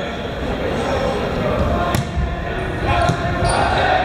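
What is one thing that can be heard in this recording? A volleyball is served and struck hard.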